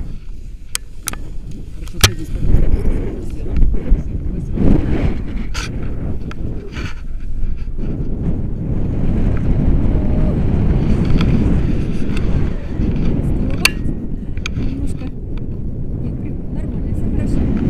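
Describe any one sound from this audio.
Wind rumbles loudly across a microphone outdoors.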